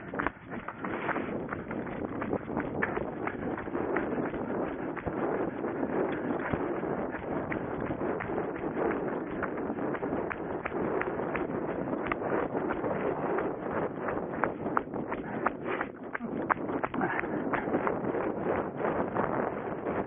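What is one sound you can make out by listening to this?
Footsteps thud quickly and steadily on grass and dirt as someone runs.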